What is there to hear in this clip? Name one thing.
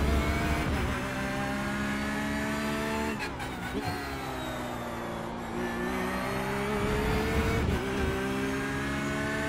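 A racing car engine roars steadily, its pitch rising as it accelerates and dropping at each gear change.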